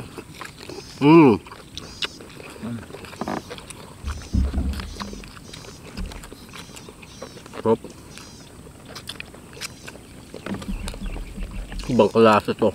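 A young man hums loudly with pleasure, close up.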